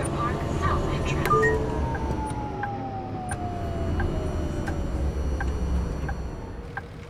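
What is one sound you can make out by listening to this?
A tram's electric motor whines and falls in pitch as the tram slows to a stop.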